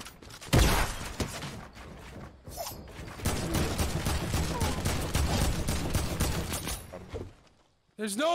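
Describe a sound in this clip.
Rapid gunshots crackle in a video game.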